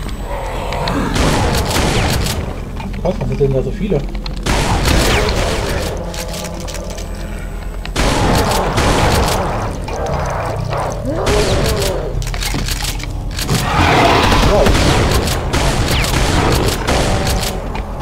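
A shotgun fires loud, booming blasts again and again.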